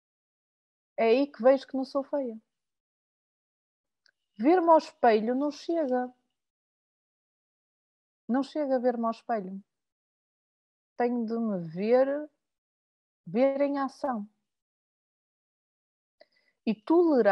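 A middle-aged woman speaks calmly in short phrases over an online call.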